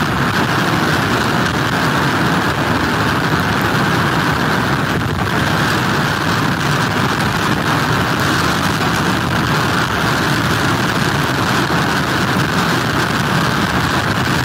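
Heavy waves crash and churn on the shore.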